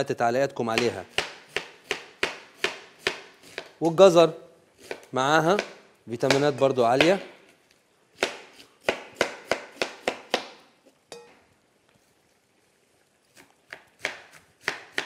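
A knife chops quickly on a cutting board.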